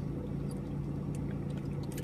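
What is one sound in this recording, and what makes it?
A young man gulps water from a plastic bottle.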